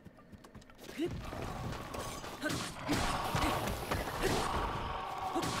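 A sword strikes skeletons with sharp hits.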